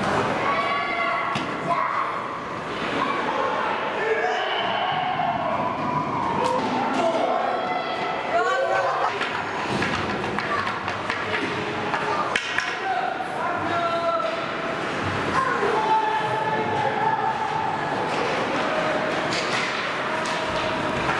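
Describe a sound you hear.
Skates scrape and hiss across ice in a large echoing rink.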